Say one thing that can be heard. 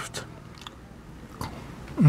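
A man chews food with his mouth open.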